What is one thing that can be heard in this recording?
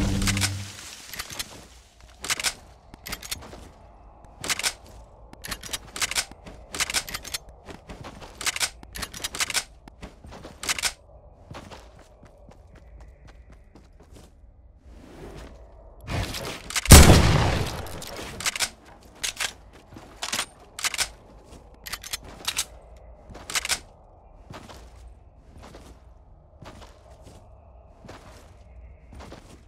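Footsteps patter across grass.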